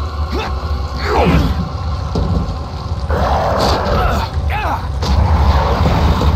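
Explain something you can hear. A creature screeches and shrieks.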